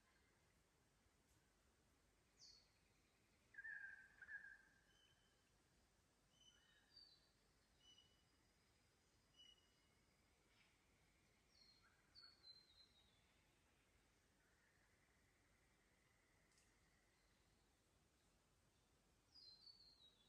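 A shallow creek trickles softly over rocks.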